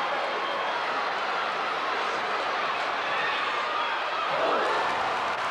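A large crowd cheers and chatters in an echoing arena.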